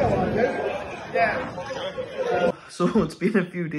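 A young man talks calmly, close up.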